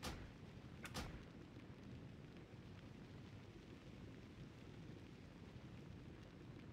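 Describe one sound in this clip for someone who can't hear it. Spell effects crackle and whoosh.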